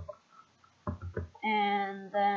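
A menu click sounds in a video game.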